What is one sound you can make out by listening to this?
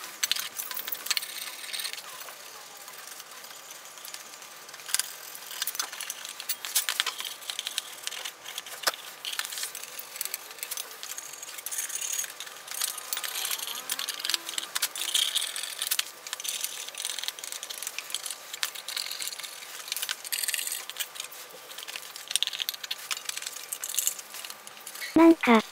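Metal parts clink and clatter against each other.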